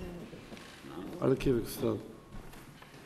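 A middle-aged man speaks briefly into a microphone.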